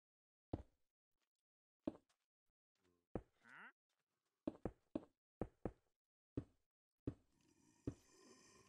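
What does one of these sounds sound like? Blocks are placed with short, dull knocks, one after another.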